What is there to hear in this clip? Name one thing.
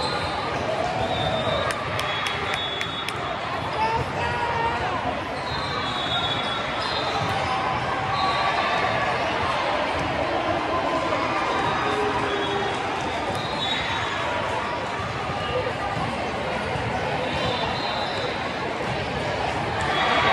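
A crowd chatters steadily in a large echoing hall.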